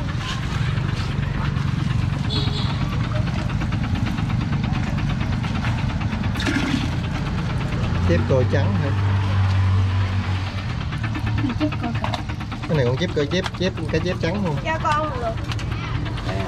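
Water bubbles steadily from an air hose in a tank.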